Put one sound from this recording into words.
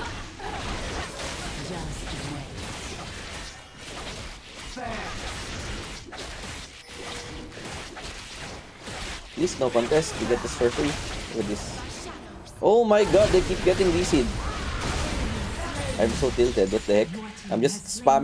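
Game sound effects of spells and combat clash and whoosh.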